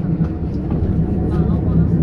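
A bus passes close by with a low engine rumble.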